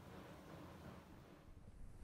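Water trickles down a drain.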